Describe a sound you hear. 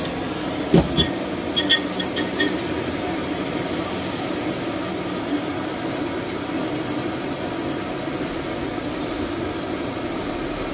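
A gas torch hisses steadily.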